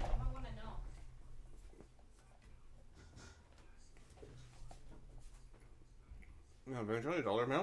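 A middle-aged man chews food with his mouth closed.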